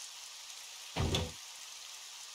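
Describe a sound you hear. A heavy metal door thuds open.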